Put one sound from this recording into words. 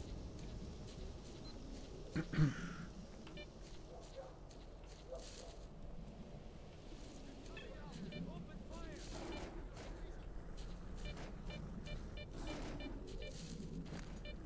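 Footsteps rustle through tall grass and bushes.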